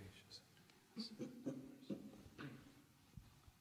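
A man murmurs quietly.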